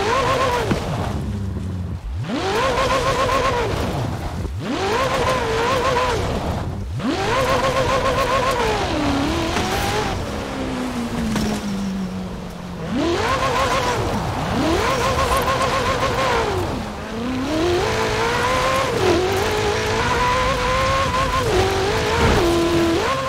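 A sports car engine revs hard, rising in pitch, bouncing at the top and dropping again as gears change.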